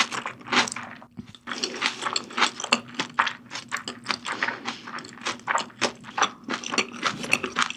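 A young woman chews food wetly and loudly, close to a microphone.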